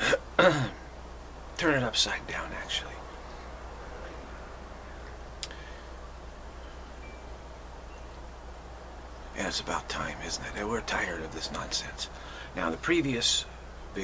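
A middle-aged man speaks calmly and close to a microphone, with pauses.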